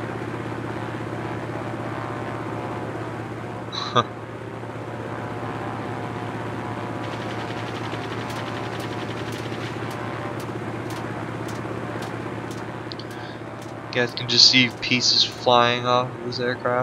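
A propeller warplane's piston engine drones.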